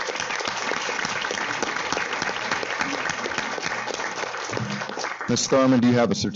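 A large crowd cheers and applauds in a large room.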